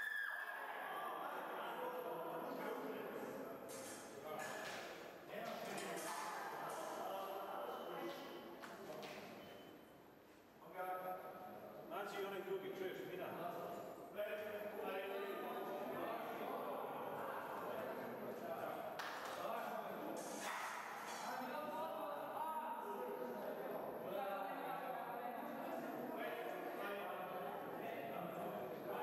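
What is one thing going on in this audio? Several men and women chatter nearby in a large echoing hall.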